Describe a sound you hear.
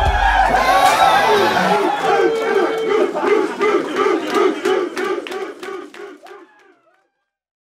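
A crowd of young men cheers and chants loudly together.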